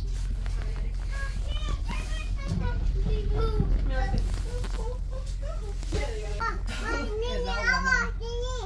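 A train hums and rumbles steadily while riding.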